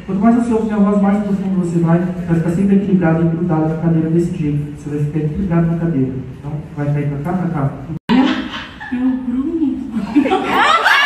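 A man speaks calmly through loudspeakers in a large hall.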